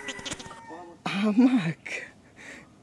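A young man speaks close by with surprise.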